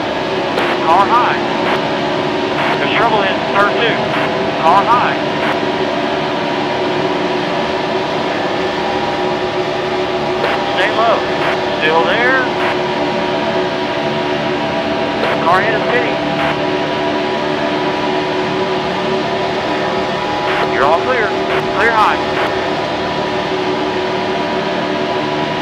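Racing car engines roar steadily at high speed.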